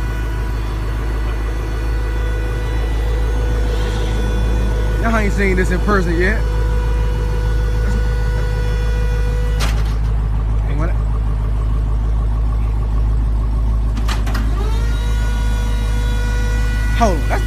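A car rolls slowly up a metal ramp.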